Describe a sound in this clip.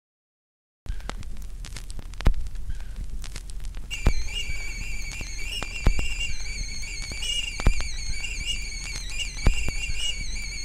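A vinyl record crackles and pops on a turntable.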